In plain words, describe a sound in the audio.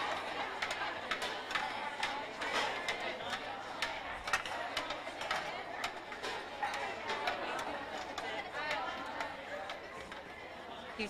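Metal trays and serving spoons clatter.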